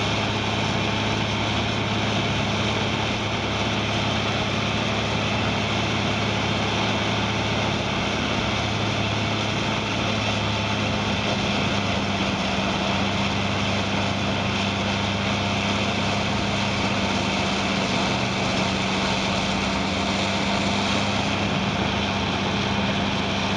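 A large diesel engine drones loudly and steadily close by.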